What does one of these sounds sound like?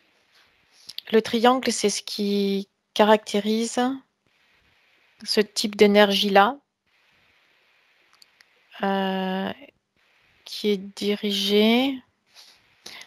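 A woman sings long, steady tones into a close microphone.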